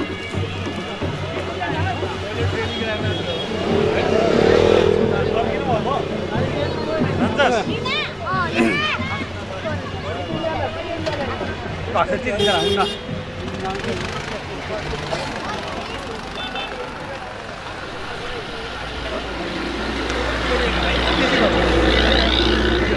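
A crowd of men and women chatters close by outdoors.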